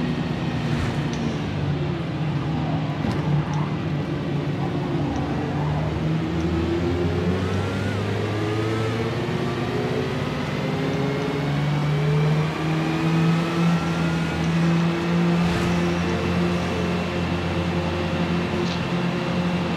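A racing car engine roars at high revs, rising in pitch as it speeds up.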